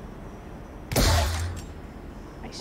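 A toy blaster fires with a loud whooshing burst.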